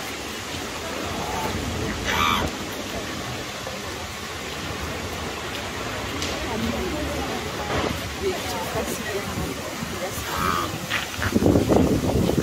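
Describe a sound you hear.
Water trickles softly from a fountain in the distance.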